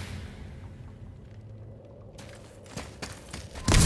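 Heavy footsteps crunch on stone.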